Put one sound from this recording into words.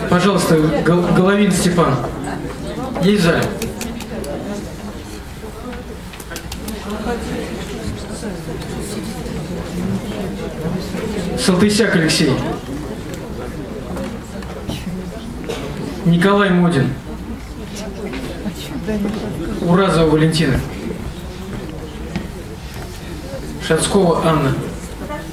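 A young man speaks steadily into a microphone, heard over loudspeakers in a large echoing hall.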